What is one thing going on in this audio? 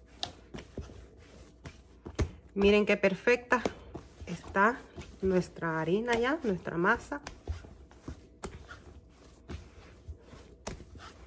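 Hands knead dough with soft thumps and slaps on a hard surface.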